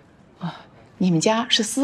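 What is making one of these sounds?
An older woman answers calmly.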